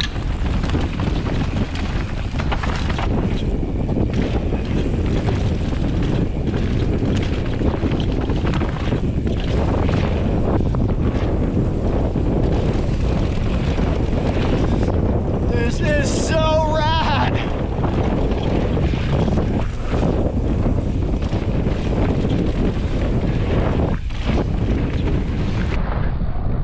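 Bicycle tyres rumble over a dirt trail.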